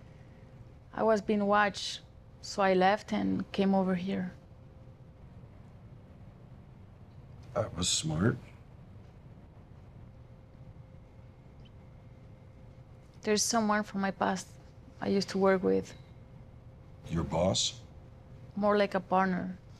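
A middle-aged woman speaks quietly and calmly close by.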